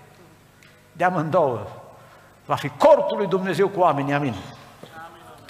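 A middle-aged man speaks emphatically through a microphone in an echoing hall.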